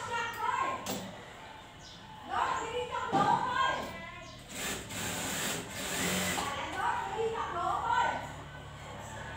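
A sewing machine whirs and rattles.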